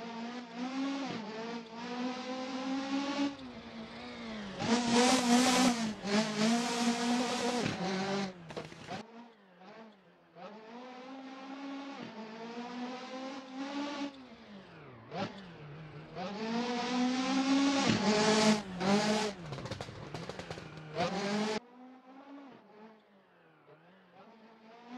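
A rally car engine roars loudly, revving up and dropping between gear changes.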